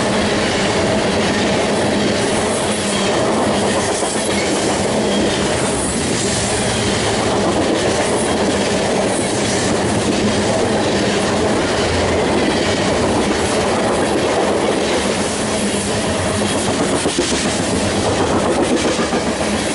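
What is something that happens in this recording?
A long freight train rumbles and clatters past close by.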